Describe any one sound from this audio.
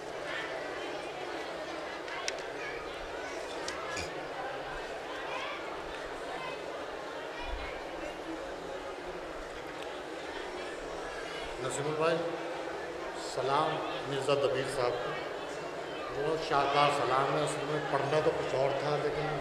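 A man recites in a chanting voice through a microphone.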